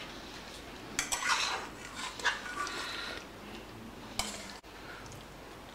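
A metal spatula scrapes and clinks against a metal pot.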